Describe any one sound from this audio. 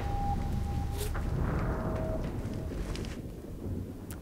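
A drilling machine rumbles low and steady.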